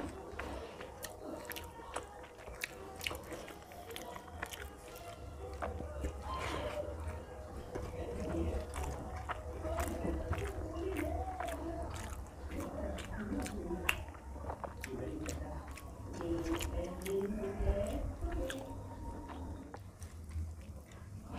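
Fingers squish and mix soft rice on a plate.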